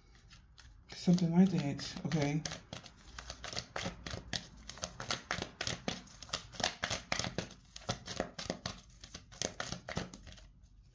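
Cards shuffle and flick rapidly, close by.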